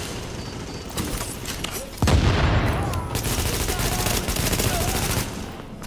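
Rifle gunfire rattles in rapid bursts.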